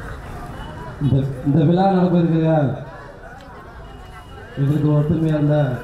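A young man speaks forcefully into a microphone over a loudspeaker, with pauses between phrases.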